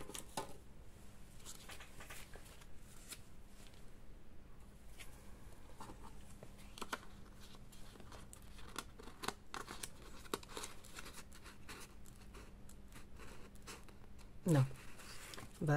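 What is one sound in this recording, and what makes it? Paper rustles and crinkles softly.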